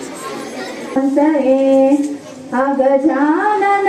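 A woman speaks loudly into a microphone.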